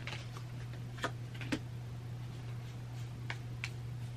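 Cards flick and tap against each other as hands shuffle them.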